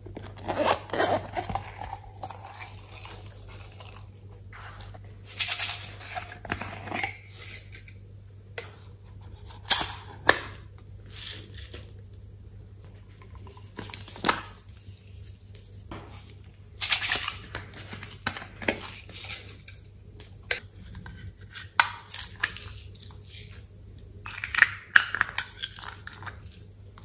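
Plastic containers click and rattle as hands handle them.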